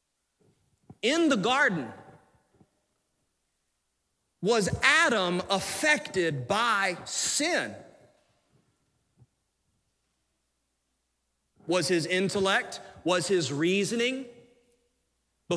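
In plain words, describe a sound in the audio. A man preaches with animation through a microphone, his voice rising to emphatic shouts.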